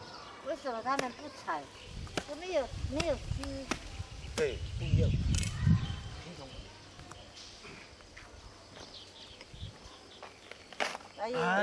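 A coconut is struck with sharp knocks.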